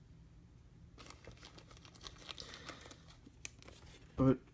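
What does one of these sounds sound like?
Plastic card sleeves rustle and crinkle softly as hands handle them.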